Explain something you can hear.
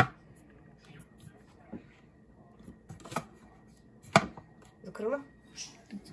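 A plastic cup clicks into a lid.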